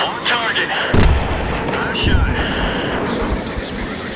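A bomb explodes with a deep, rumbling boom.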